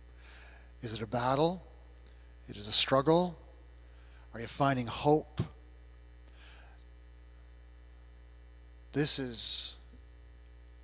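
An older man speaks slowly into a microphone, in short phrases with long pauses, in an echoing hall.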